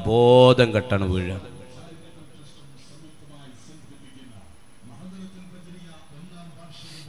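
A man speaks forcefully into a microphone over a loudspeaker, with echo.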